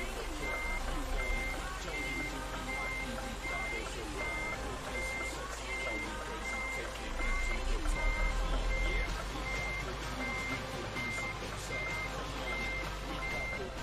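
A truck engine rumbles low as the truck backs up slowly.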